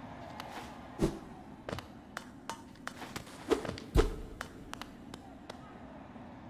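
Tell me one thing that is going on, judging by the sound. Short video game sound effects thud and click.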